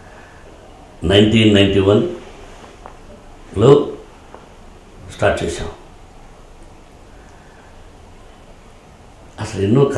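A middle-aged man speaks calmly into a microphone in short bursts.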